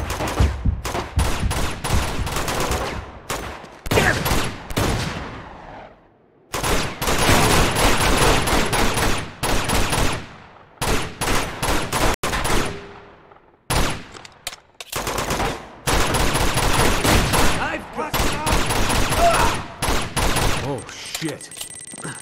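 Pistol shots crack in rapid bursts, echoing off walls.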